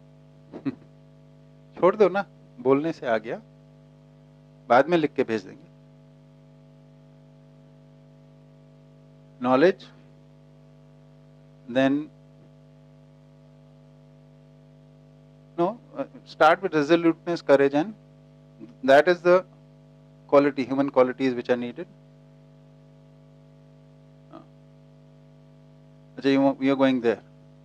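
A middle-aged man speaks calmly through a microphone, in short bursts with long pauses.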